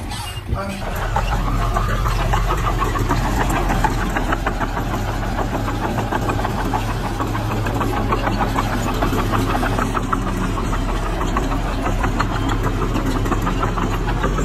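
Bulldozer tracks clank over the dirt.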